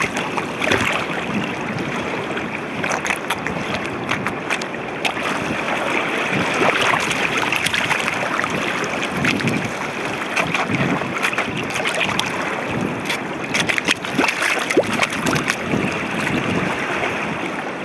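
Shallow water flows and trickles steadily.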